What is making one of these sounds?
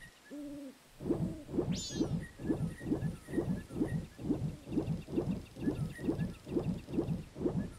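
Water sloshes in quick, even strokes of swimming.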